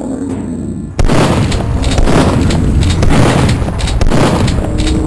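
A shotgun fires loud booming blasts that echo.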